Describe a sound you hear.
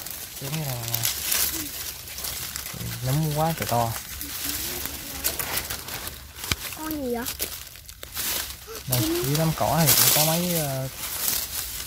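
Dry leaves rustle as a hand pushes through them.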